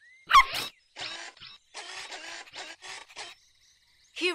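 A dog pants rapidly.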